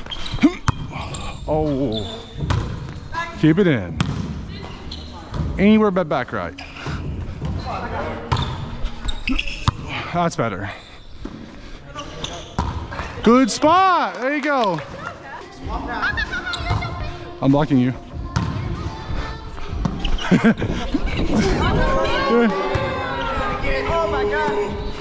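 Men and women call out and shout to each other in a large echoing gym.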